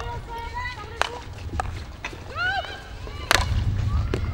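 A hockey stick strikes a ball with a sharp crack.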